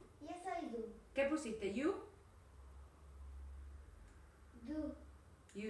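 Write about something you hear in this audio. A woman speaks with animation, close to the microphone.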